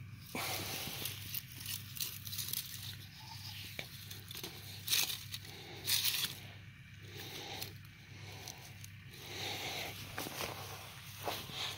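Water trickles from a thin tube into damp soil.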